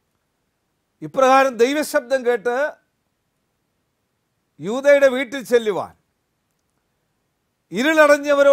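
An elderly man speaks calmly into a close microphone, with pauses.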